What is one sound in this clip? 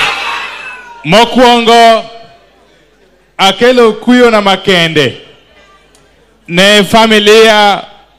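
A middle-aged man speaks into a microphone over loudspeakers in short bursts.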